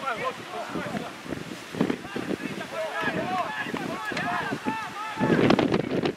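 Men shout to each other from a distance across an outdoor football pitch.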